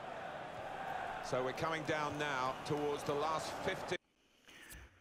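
A stadium crowd cheers and chants loudly.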